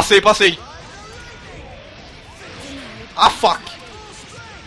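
Sharp hit and slash sounds burst out in a fast fighting game.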